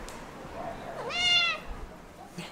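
A cat meows loudly.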